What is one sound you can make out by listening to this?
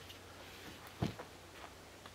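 A backpack thumps onto the ground.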